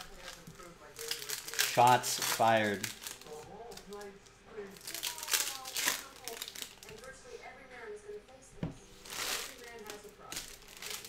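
Foil card packs crinkle and tear as hands open them.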